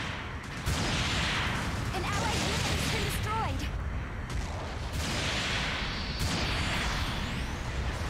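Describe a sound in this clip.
Beam guns fire in sharp, sizzling bursts.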